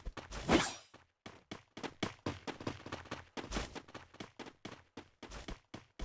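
Footsteps patter quickly and evenly.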